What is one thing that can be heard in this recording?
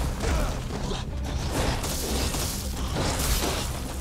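A monster's claws strike with sharp thuds.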